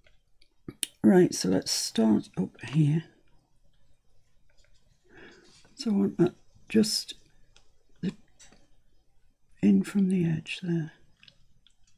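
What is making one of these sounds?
A middle-aged woman talks calmly and close to a microphone.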